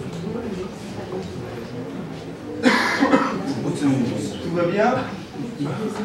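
An acoustic guitar is played.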